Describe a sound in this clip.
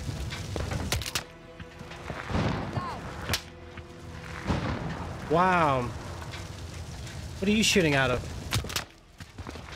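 Rifle shots crack sharply, a few times.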